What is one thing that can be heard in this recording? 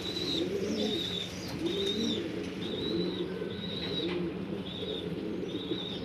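Pigeons coo softly and repeatedly close by.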